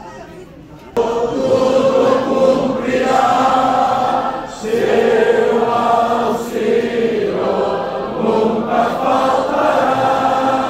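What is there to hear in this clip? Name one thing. A brass band plays a slow hymn.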